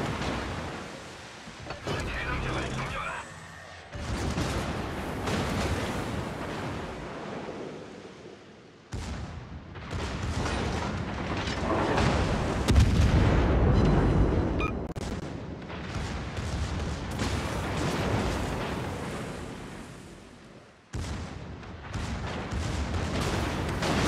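Shells splash into water nearby.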